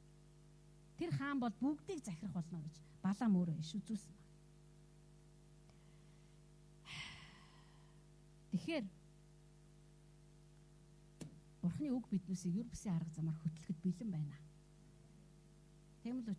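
A middle-aged woman speaks emotionally into a microphone, heard through a loudspeaker, with long pauses.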